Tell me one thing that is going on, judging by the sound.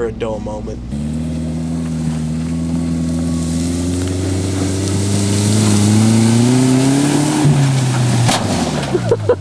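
A truck engine revs and rises in pitch.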